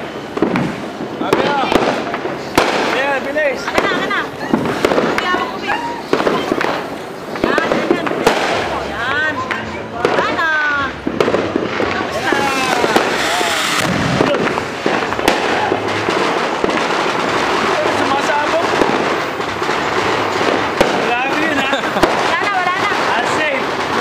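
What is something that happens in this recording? Children shout and squeal excitedly nearby.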